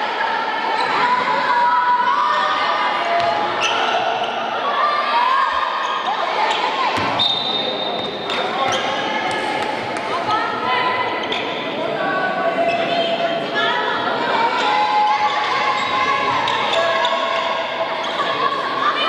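Young women shout and call out to each other in an echoing hall.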